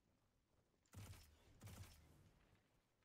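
A rifle fires a few sharp shots.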